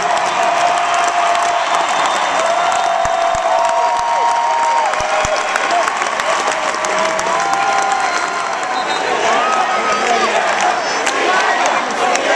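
A large crowd cheers and roars loudly in a big echoing arena.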